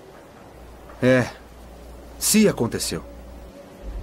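A young man speaks quietly, close by.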